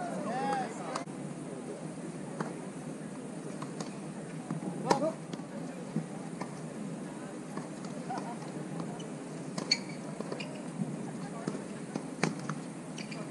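Tennis balls pop off rackets in a rally outdoors.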